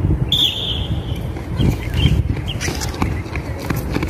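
Runners' feet patter on a track.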